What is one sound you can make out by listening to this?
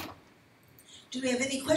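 A second woman speaks briefly.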